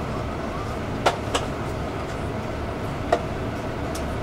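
The bus rattles and clunks as it pulls away.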